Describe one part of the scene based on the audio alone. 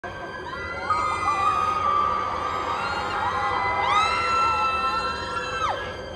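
A young woman sings high, long held notes through loudspeakers in a large echoing hall.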